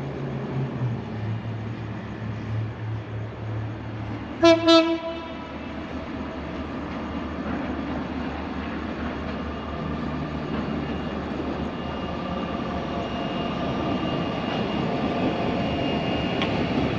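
A diesel locomotive rumbles as it approaches, growing louder.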